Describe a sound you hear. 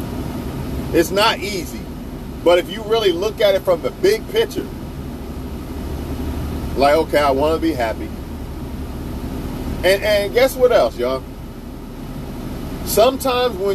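A man talks close by in short bursts, calmly.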